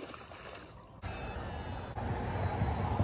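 A fishing reel whirs as line pays out on a cast.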